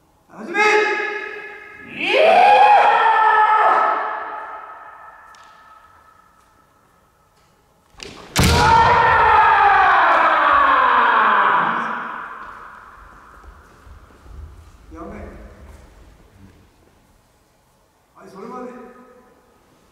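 Men shout long, loud battle cries that echo through a large hall.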